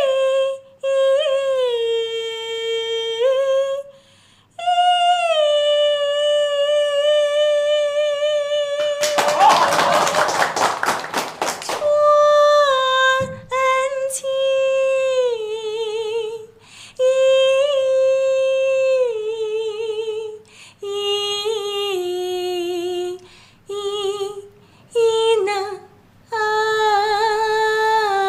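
A young woman sings in long, held notes with vibrato, close and clear.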